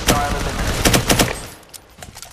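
A gun fires several quick shots close by.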